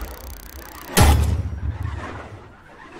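A deep booming impact hits once and rings out.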